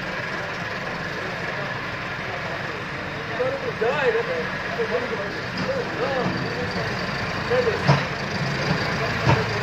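A tractor engine rumbles steadily close by.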